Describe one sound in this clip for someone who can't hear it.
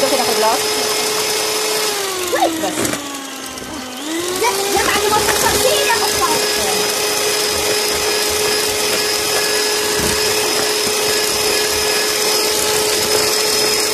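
Mixer beaters whisk through thick batter.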